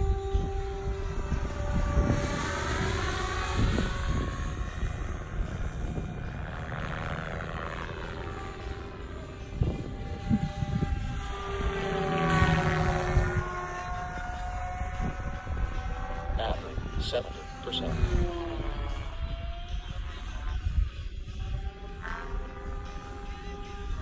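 A small model plane's motor whines overhead, its pitch rising and falling as it passes.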